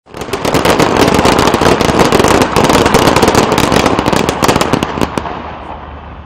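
Many rifles clatter and crack sharply in a rapid ripple.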